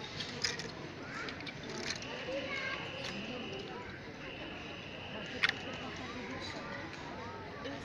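Clothes hangers click and scrape along a metal rail.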